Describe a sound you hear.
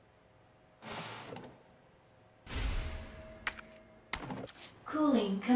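A machine sprays mist with a soft hiss.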